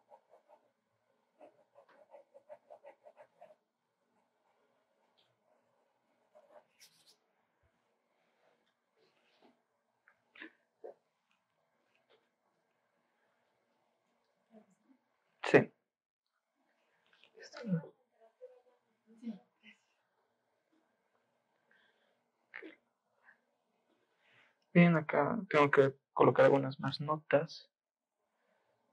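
A pencil scratches on paper in short strokes.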